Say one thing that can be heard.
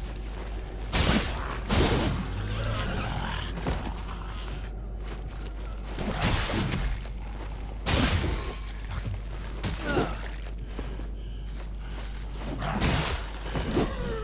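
Sword blows strike with sharp thuds.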